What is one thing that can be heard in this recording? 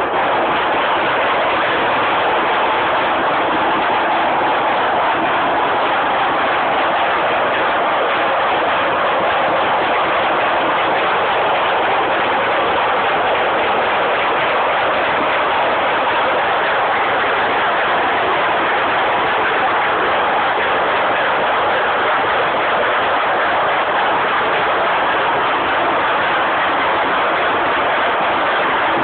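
A large machine runs with a steady, loud mechanical roar.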